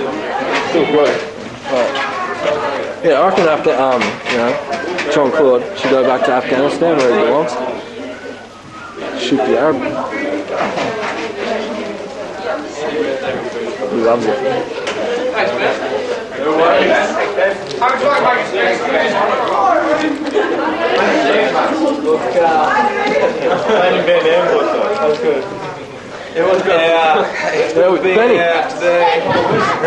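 A crowd of young men and women chatters and laughs nearby.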